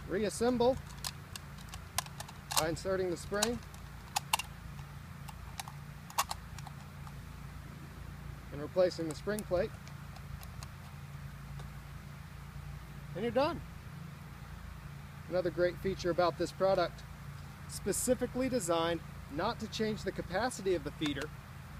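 Shotgun shells click as they are loaded into a gun.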